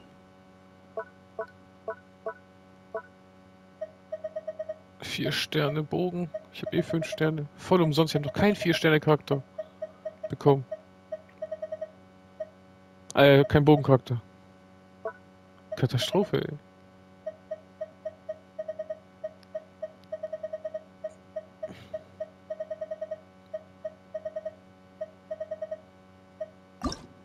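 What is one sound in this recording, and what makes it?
Soft menu clicks tick in quick runs.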